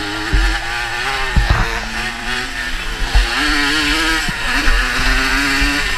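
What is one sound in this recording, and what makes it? A dirt bike engine revs loudly up and down close by.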